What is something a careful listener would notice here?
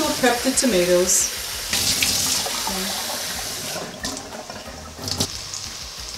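Tap water runs and splashes into a bowl.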